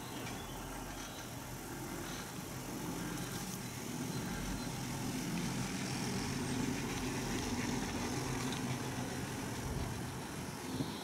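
A chairlift cable rumbles and clatters as it runs over the pulleys of a tower.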